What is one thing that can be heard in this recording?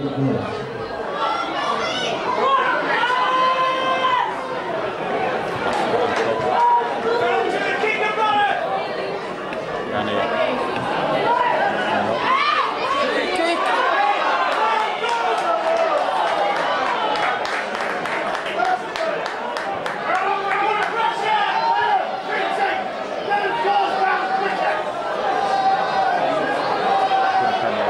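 A crowd chatters and shouts throughout.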